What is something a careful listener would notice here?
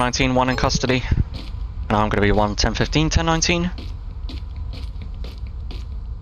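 Footsteps tap on a brick pavement.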